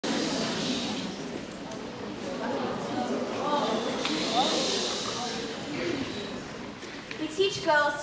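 A crowd of children murmurs and chatters in an echoing hall.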